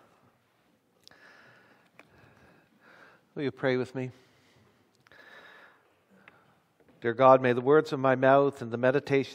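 An older man speaks calmly into a microphone.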